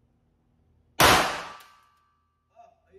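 A pistol fires a single loud shot that rings out in an echoing room.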